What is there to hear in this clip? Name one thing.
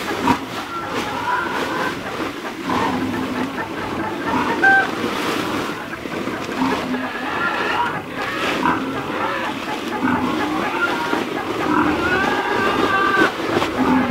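A plastic sack rustles as it shifts in the straw.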